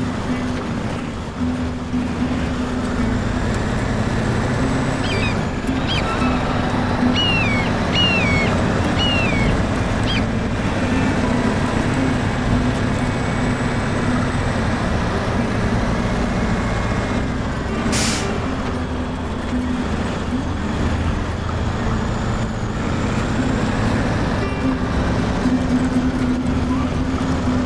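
A heavy truck engine rumbles and drones steadily.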